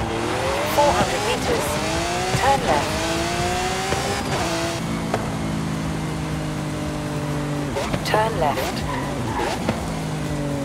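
Exhaust pops and crackles between gear shifts.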